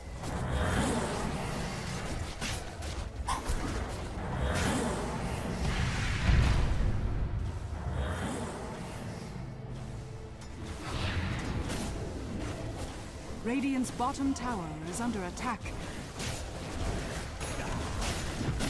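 Game spell effects and weapon hits clash in a battle.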